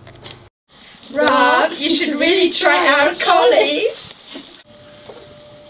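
A woman speaks with excitement.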